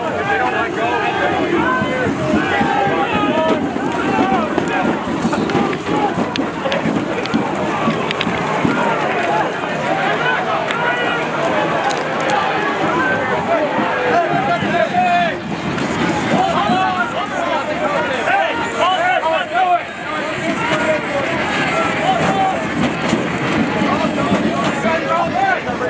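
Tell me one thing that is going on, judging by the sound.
A crowd of men shout and talk loudly all around, outdoors.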